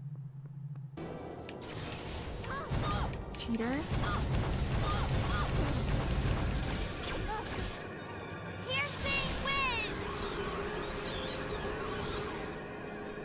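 Magic blasts crackle and burst loudly.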